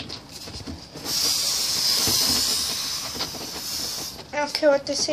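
An aerosol can sprays with a loud hiss.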